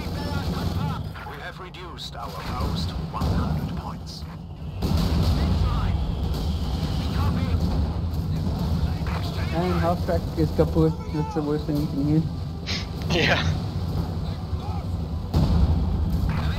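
Tank engines rumble low amid a battle.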